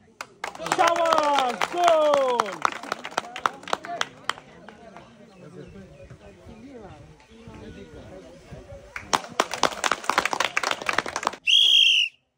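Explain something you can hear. A crowd claps hands rapidly.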